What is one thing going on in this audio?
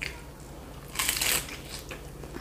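A woman bites into crunchy fried food close to a microphone.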